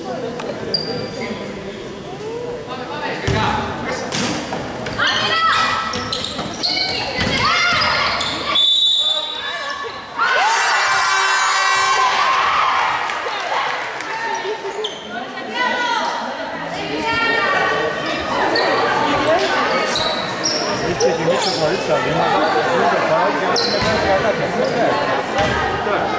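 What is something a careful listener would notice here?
Young women shout to each other across an echoing hall.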